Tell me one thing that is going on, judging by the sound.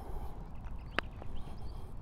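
A putter taps a golf ball with a light click.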